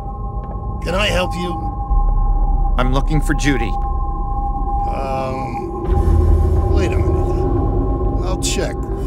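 A man speaks in short phrases.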